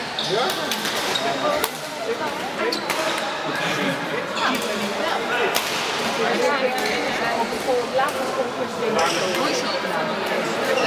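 Shuttlecocks pop off badminton rackets in a large echoing hall.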